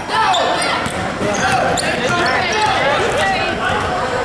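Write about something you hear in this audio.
A basketball bounces on the floor, echoing in a large hall.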